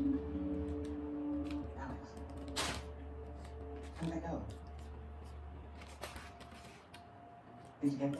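A paper wrapper rustles and crinkles.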